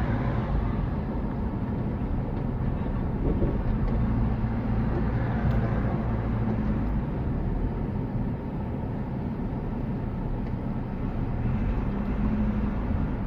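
A car engine hums steadily from inside the car as it drives along.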